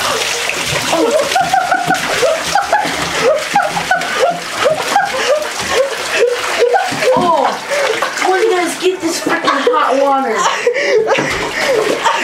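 Water sprays from a shower and splashes.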